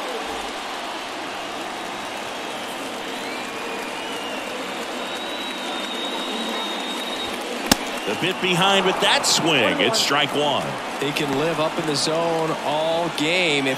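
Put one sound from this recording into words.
A large crowd murmurs steadily.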